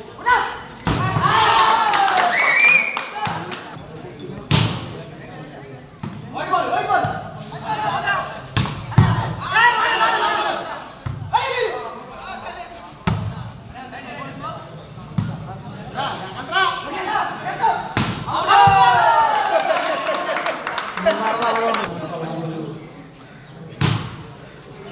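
A ball is struck with sharp thuds.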